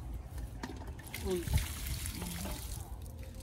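Water splashes as a basket is emptied into a metal basin.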